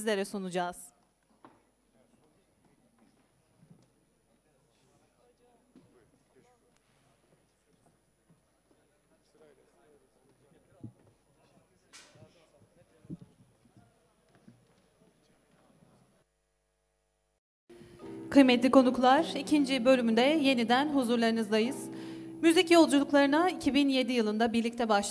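A young woman speaks through a microphone in an echoing hall.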